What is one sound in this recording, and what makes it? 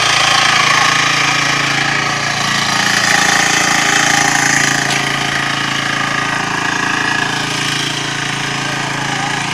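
Soil scrapes as a tiller churns the ground.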